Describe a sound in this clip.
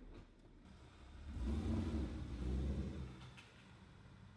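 A car engine rumbles deeply through its exhaust.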